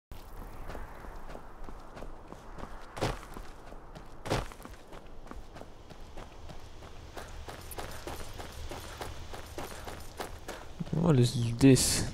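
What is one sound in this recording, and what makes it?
Footsteps crunch over snow.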